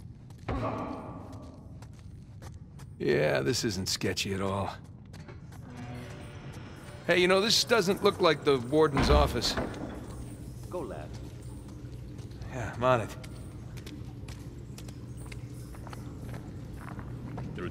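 Footsteps shuffle slowly on a hard floor in an echoing tunnel.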